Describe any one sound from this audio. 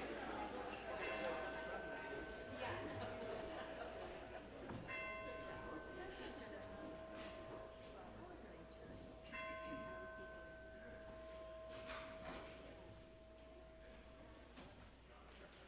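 An organ plays a few long, held notes.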